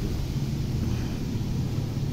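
Water trickles from a hose into a puddle.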